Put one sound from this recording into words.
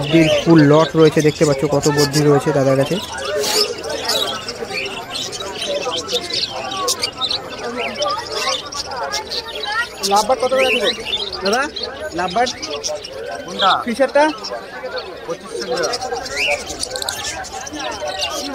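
Many small parrots chirp and chatter loudly and continuously.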